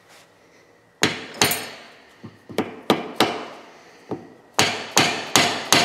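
A rubber mallet thumps repeatedly on a metal shaft.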